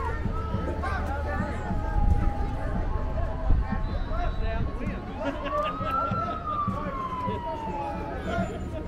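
A crowd chatters and cheers along a street.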